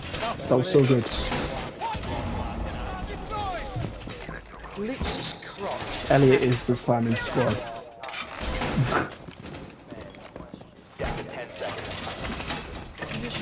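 Footsteps and hands clank on a metal ladder during a climb.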